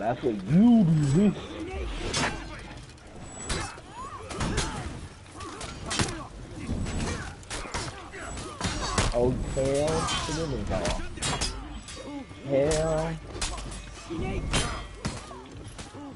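Swords clash and ring with sharp metallic strikes.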